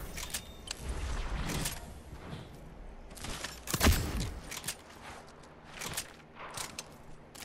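Quick footsteps patter over grass.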